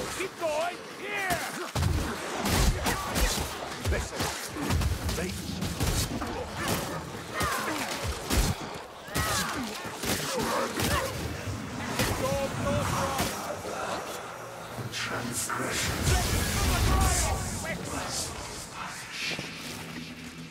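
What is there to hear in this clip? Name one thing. Monsters snarl and screech in a crowd.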